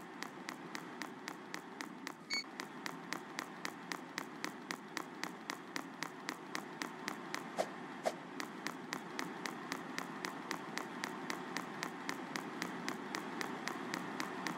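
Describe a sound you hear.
Quick, even footsteps tap on a hard floor.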